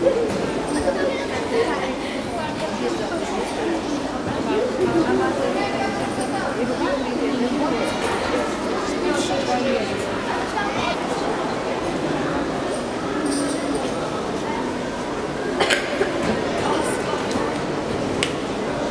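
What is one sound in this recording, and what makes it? Children and adults chatter in a large echoing hall.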